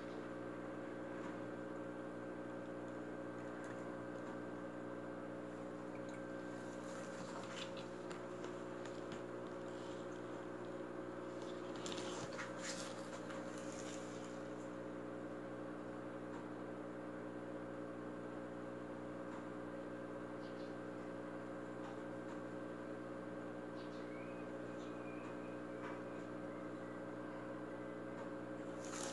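Water splashes and sloshes softly as a hand moves through it.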